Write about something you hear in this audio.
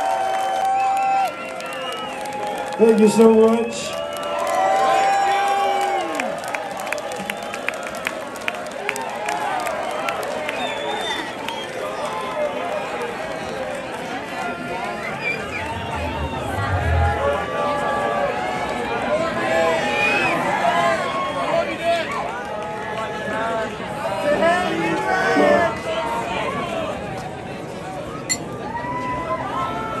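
An electric guitar plays a wailing lead.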